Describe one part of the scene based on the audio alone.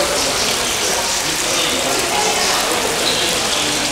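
Water splashes steadily in a fountain.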